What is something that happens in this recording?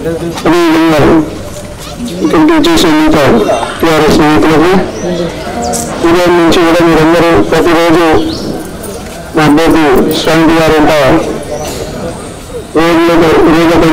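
A crowd of men and women chants slogans back in unison.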